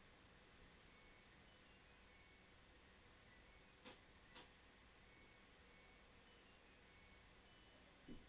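Synthesizers play soft, sparse electronic beeps.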